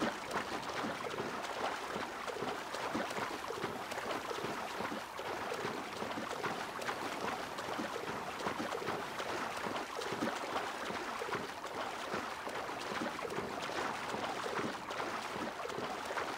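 A swimmer splashes steadily through water with rhythmic strokes.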